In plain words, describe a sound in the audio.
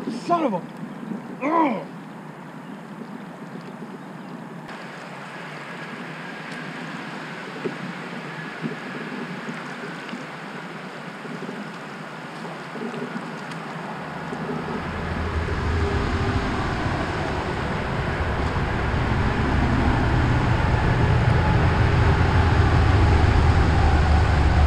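Water rushes and splashes against a small boat's hull, growing louder.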